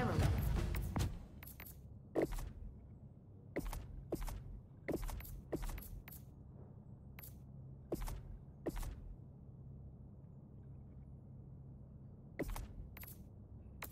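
Short interface clicks sound as menu items are selected.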